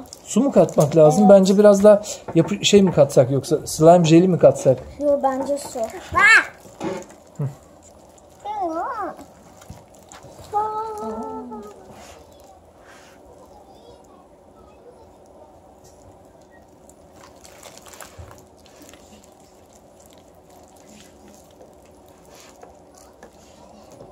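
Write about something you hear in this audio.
Wet slime squelches as hands squeeze it.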